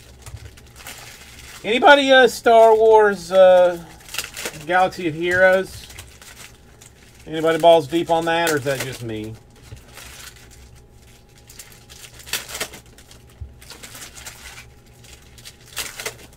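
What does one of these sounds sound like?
Plastic card wrappers crinkle and tear in hands.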